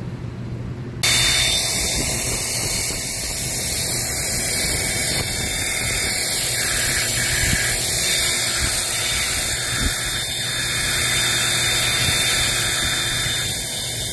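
A pressure washer sprays a hissing jet of water onto a hard surface.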